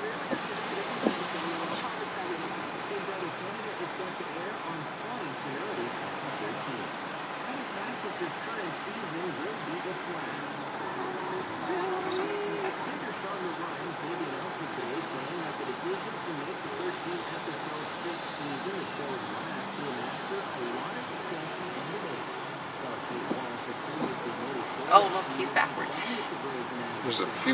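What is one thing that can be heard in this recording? A car engine idles steadily in traffic.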